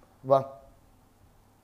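A middle-aged man speaks briefly and loudly, close to a phone microphone.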